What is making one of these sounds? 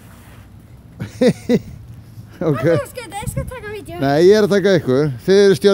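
A young girl laughs and talks excitedly close by.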